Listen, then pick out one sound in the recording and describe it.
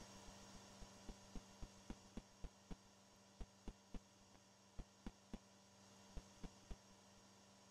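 Footsteps tap lightly in quick succession.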